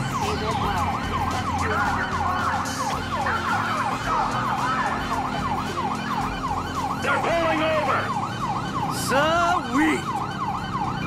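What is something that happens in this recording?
A police siren wails rapidly up and down without pause.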